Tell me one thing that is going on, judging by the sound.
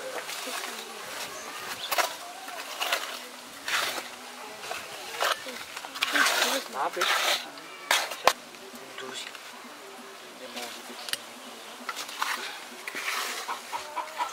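Hands scrape and pat wet cement.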